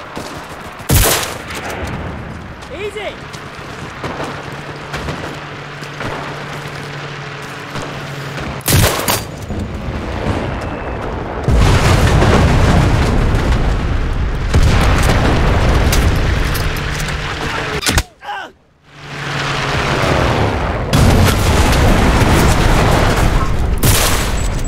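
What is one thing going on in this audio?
A rifle fires loud single shots.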